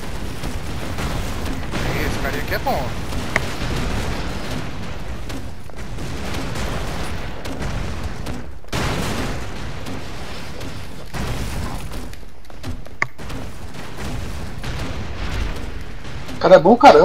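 Video game gunfire rattles in quick bursts.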